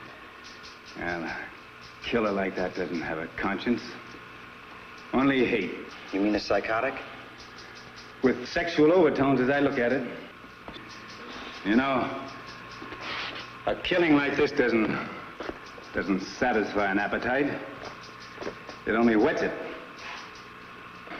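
A younger man answers in a calm voice.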